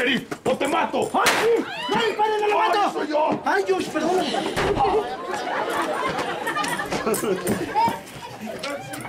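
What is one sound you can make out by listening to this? A crowd of people shouts and cheers excitedly nearby.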